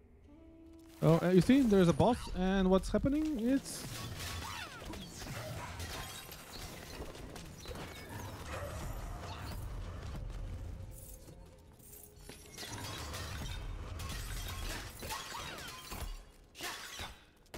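Blades swish and strike in a fast, noisy fight.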